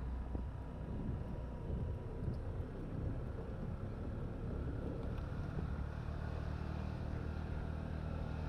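Wind buffets a moving microphone outdoors.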